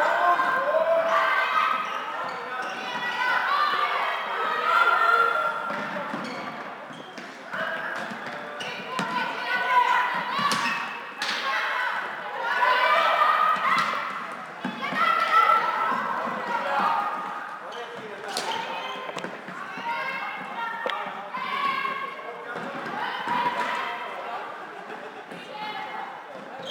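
Floorball sticks knock against a plastic ball in a large echoing hall.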